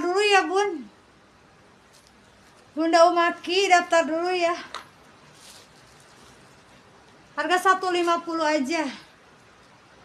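A woman speaks with animation close to the microphone, in short bursts.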